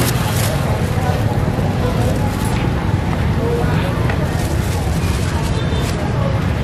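A busy outdoor street market murmurs with distant voices and traffic.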